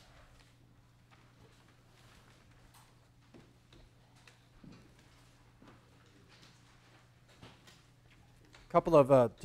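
Paper sheets rustle as a man handles them.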